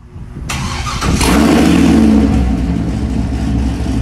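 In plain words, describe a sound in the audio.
A car engine revs loudly through its exhaust.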